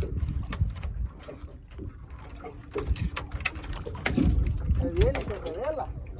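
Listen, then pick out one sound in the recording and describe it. Water laps against the hull of a small boat.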